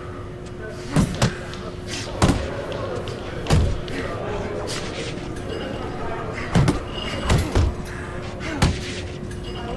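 Boxing gloves thud against a body in heavy punches.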